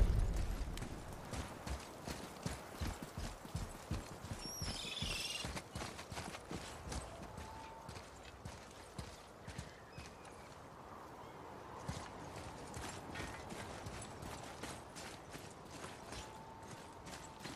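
Heavy footsteps thud on stone and through brush.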